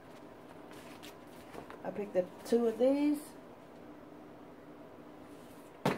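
A sheet of card rustles as it is lifted.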